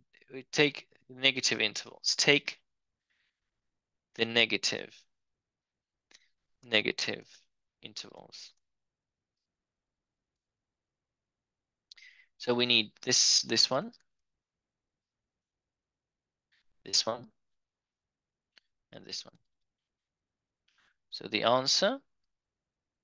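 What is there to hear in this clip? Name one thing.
A man explains calmly into a close microphone, in short phrases with pauses.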